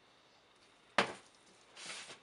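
A plastic jug is set down on a metal counter with a knock.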